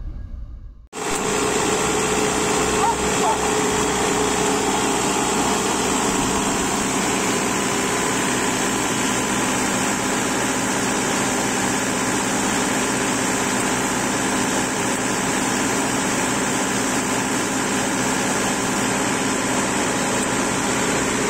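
A diesel skid steer loader's engine runs with a steady drone.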